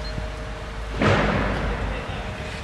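A heavy metal panel clanks loudly against scaffolding.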